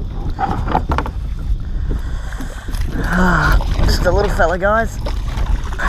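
Water splashes as a net scoops a fish from a lake.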